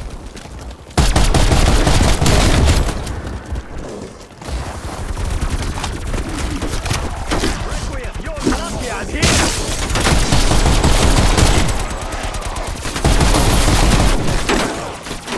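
A heavy gun fires in loud, rapid bursts.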